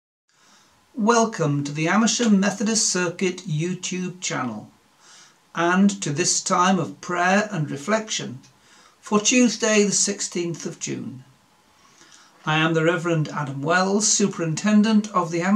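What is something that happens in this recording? A middle-aged man speaks calmly and warmly, close to a microphone.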